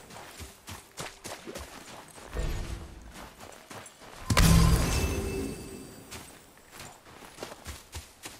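Heavy footsteps crunch through snow at a brisk pace.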